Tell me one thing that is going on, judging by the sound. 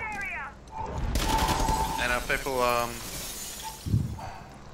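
Glass shatters and debris clatters.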